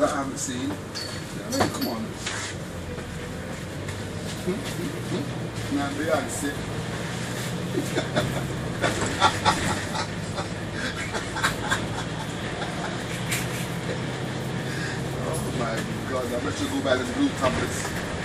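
A bus engine hums steadily from inside.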